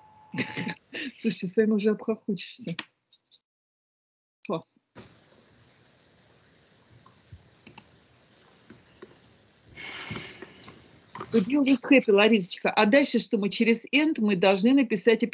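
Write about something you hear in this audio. An older woman speaks with animation over an online call.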